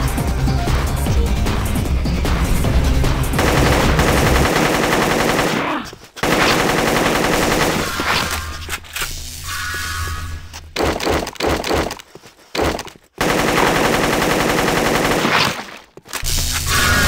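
An automatic gun fires rapid bursts of shots.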